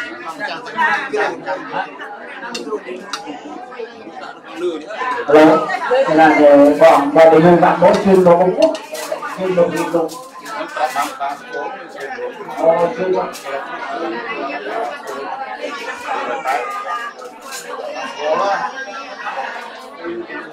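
A man speaks steadily through a microphone and loudspeaker in a room.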